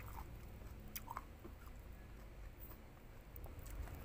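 A young woman chews and smacks her lips.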